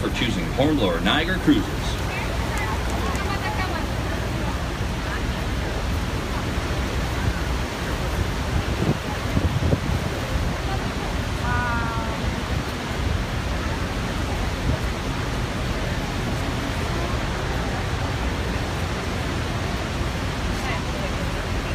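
Wind buffets outdoors.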